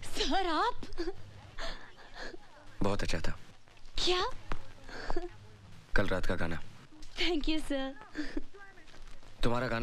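A young woman speaks warmly and close by.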